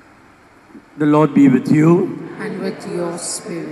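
A middle-aged man reads aloud through a microphone in an echoing room.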